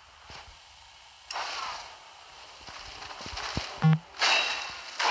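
A magic spell crackles and hisses.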